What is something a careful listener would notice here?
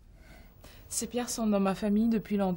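A young woman speaks quietly and closely.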